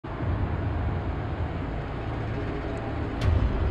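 A car engine hums as the car drives slowly over rough ground.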